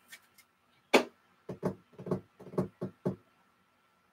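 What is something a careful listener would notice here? A plastic card case clicks and taps as it is handled.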